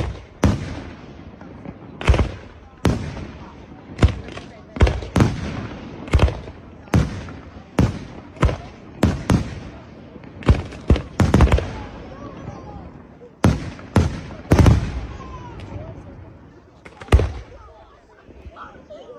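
Fireworks crackle and sizzle after the bursts.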